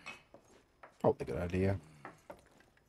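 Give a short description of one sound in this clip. A young man speaks briefly into a headset microphone.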